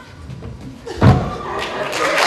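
A body thuds onto a wooden stage.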